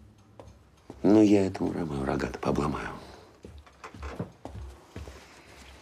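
An older man speaks firmly and close by.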